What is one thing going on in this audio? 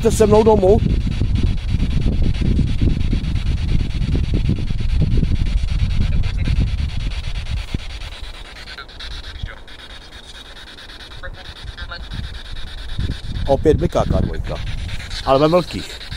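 A man speaks quietly close by, in short bursts.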